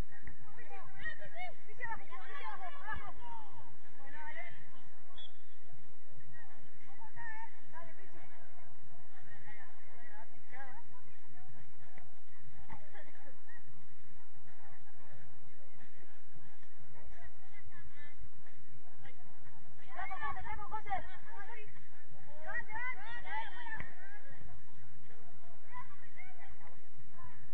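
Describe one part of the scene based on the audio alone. Young women shout and call out to each other outdoors across an open field.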